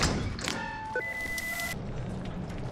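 A short electronic chime sounds as a menu opens.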